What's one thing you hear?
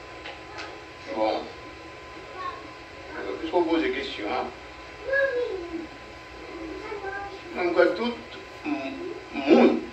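An elderly man preaches with feeling into a microphone, heard through a loudspeaker.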